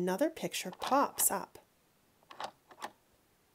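A plastic toy spinner clicks as it turns.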